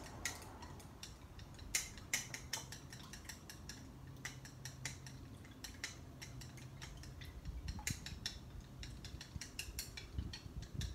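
Chopsticks click rapidly against a ceramic bowl while whisking egg.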